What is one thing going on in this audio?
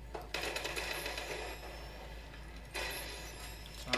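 A gun clicks and rattles as it is readied.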